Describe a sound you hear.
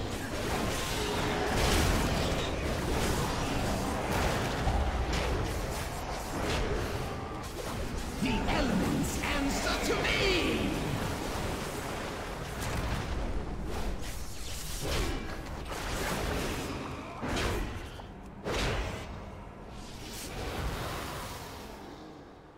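Spell effects whoosh, crackle and boom in a game battle.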